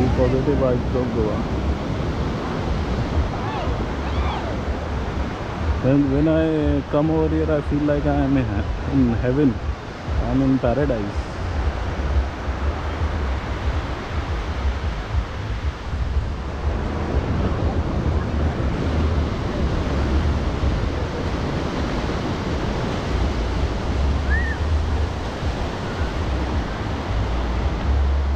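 Waves wash steadily onto a beach.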